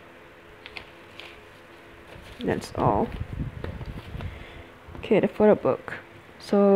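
Glossy paper rustles and crinkles as it is handled close by.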